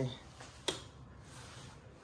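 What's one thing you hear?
A light switch clicks.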